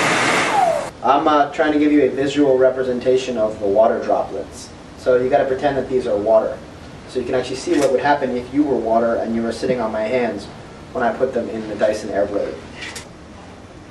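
A young man talks calmly to someone close by.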